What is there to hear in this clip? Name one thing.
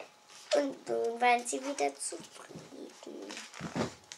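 A young girl speaks close by in a lively, sing-song voice.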